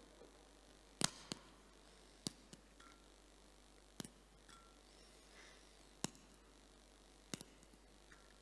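Small objects clink and knock on a table.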